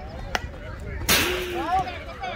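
A baseball bat strikes a ball with a sharp crack.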